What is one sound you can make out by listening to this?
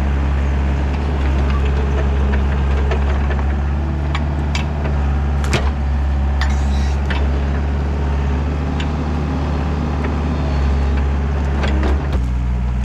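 Roots and branches crack and snap as an excavator bucket pulls at a stump.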